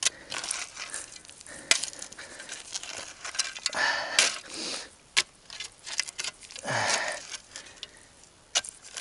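A shovel scrapes and digs into dry soil.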